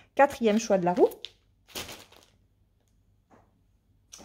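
Paper rustles in someone's hands.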